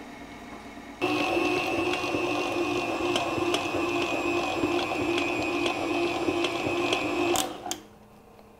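An electric stand mixer whirs steadily.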